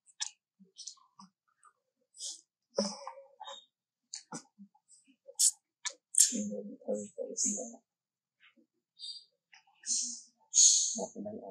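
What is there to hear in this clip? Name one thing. A monkey crunches and chews on food close by.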